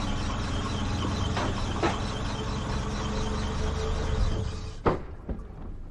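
A car engine idles nearby and then shuts off.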